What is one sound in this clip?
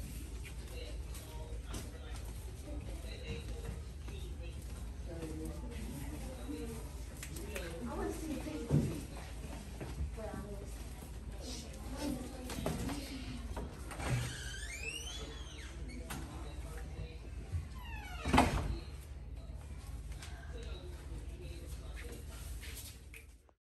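Feet stamp and shuffle on a hard floor.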